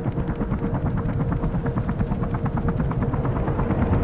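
A helicopter rumbles overhead.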